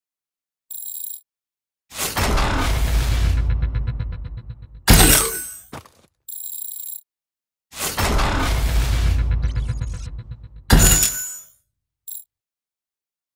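A game's menu plays a rising whoosh and a bright chime as points add up.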